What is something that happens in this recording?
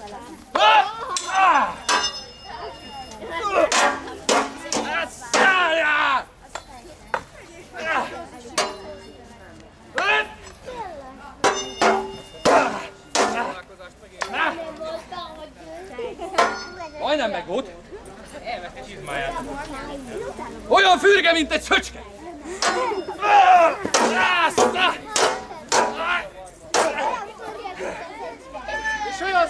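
Swords and shields clash with sharp metallic knocks.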